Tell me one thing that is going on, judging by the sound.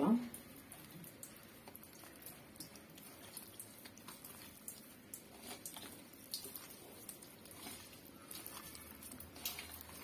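Hands squish and mix raw meat with a wet paste.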